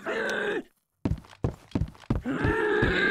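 A crowbar thuds heavily against a body.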